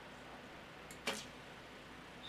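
A bowstring snaps as an arrow is released.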